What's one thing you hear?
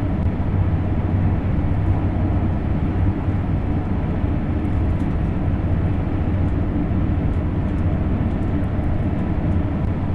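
A train rumbles steadily along the rails at high speed.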